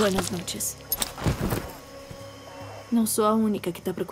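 A body slumps heavily to the ground.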